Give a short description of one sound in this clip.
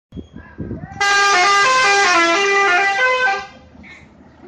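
A bus horn plays a loud musical tune.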